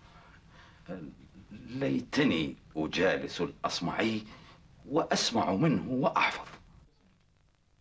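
A middle-aged man speaks calmly and warmly, close by.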